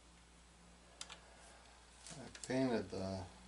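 Small plastic parts click softly as hands handle them.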